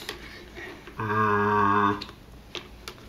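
A man hums loudly into a plastic bucket, the sound hollow and booming.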